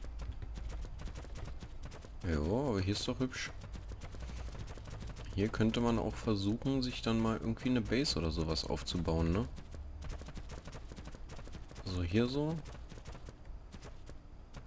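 Horse hooves thud steadily on grass and dirt.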